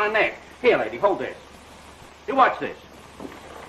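A man speaks with animation, heard through an old, muffled recording.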